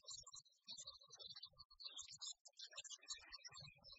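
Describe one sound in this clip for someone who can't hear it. A woman talks into a microphone.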